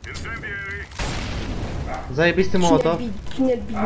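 A fire roars.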